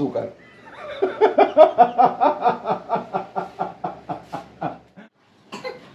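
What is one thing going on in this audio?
A young man laughs heartily.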